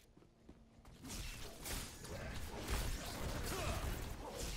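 Loud magic blasts and explosions boom and crackle.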